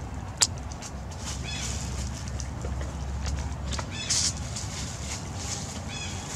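A monkey tugs at a plastic bag, making it crinkle and rustle.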